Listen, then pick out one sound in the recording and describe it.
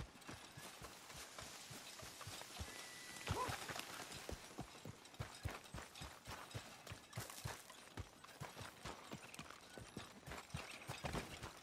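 Footsteps run across dirt and gravel.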